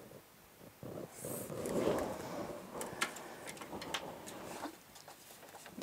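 Stiff paper rustles as it is moved and flipped over.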